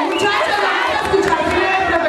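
A young woman speaks briefly into a microphone, heard through a loudspeaker.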